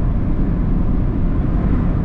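A truck passes close by the car.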